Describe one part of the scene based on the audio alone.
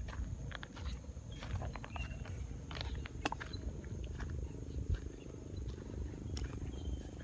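Footsteps crunch on dry grass and gravel.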